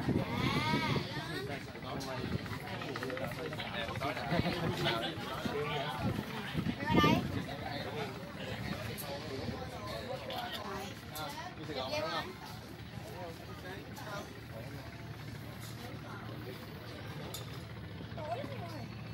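A crowd of young adults talks nearby outdoors.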